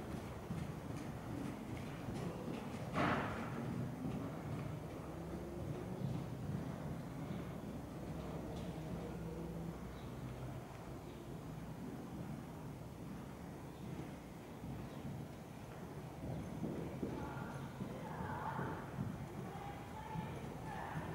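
A horse's hooves thud softly on sand in a large echoing hall.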